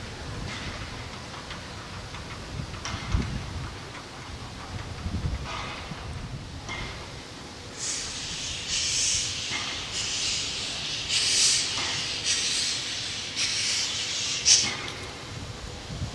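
A steam locomotive chuffs in heavy puffs of exhaust.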